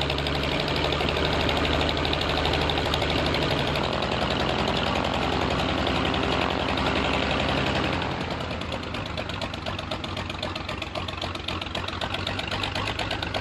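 A small propeller plane's engine runs loudly nearby.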